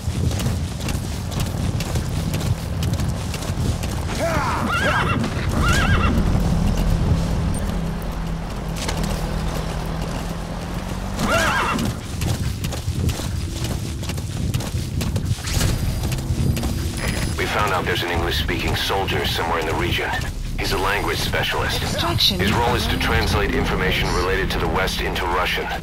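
Horse hooves pound steadily on a dirt track.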